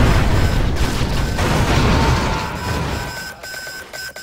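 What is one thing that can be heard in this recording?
An explosion booms and rumbles loudly, then dies away.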